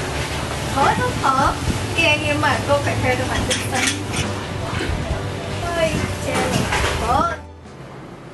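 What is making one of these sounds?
A young woman speaks close by in a complaining tone.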